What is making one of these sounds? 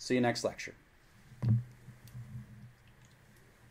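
A middle-aged man sips a drink from a can.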